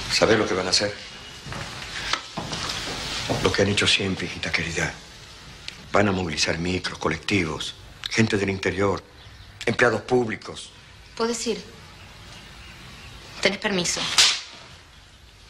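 An elderly man speaks in a low, earnest voice close by.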